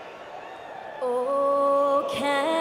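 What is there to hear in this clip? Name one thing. A young woman sings into a microphone over loudspeakers in a large echoing hall.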